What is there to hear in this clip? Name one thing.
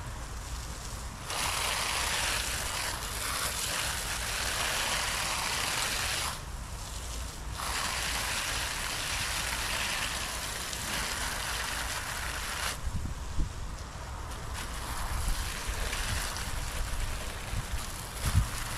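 A lawn mower engine runs steadily close by.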